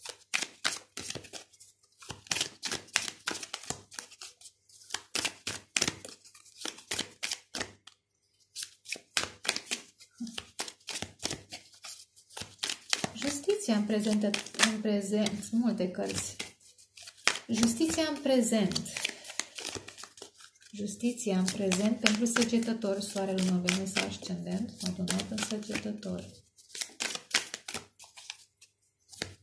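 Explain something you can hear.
Playing cards riffle and slap as a deck is shuffled by hand.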